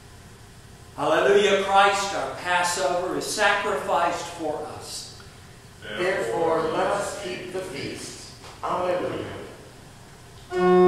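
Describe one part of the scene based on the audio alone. A man speaks calmly, reading out in an echoing room.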